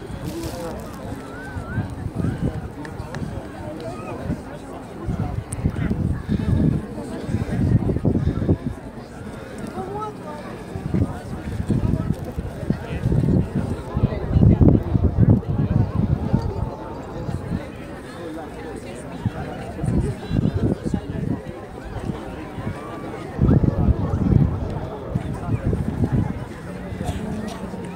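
A crowd of young people chat at a distance.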